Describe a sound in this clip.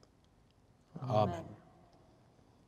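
A man answers briefly.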